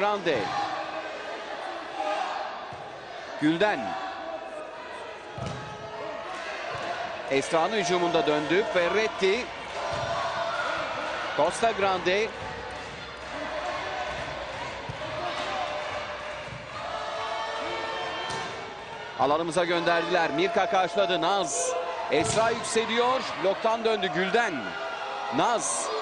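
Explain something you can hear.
A crowd in a large echoing hall cheers and chatters throughout.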